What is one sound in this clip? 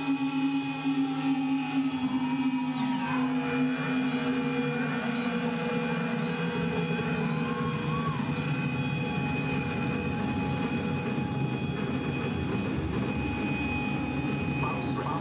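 A band plays loud, droning music that echoes through a large hall.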